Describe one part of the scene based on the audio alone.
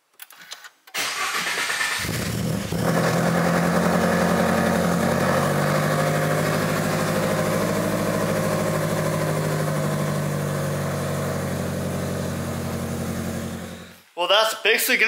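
A car engine starts and idles with a steady rumble, then revs higher.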